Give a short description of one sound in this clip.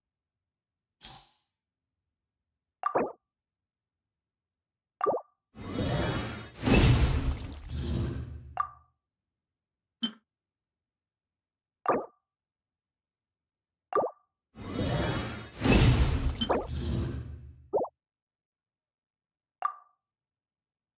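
Soft game menu clicks chime now and then.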